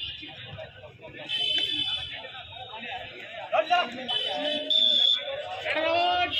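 A young man chants rapidly.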